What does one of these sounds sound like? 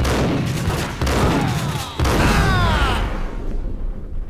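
A shotgun fires loud, echoing blasts.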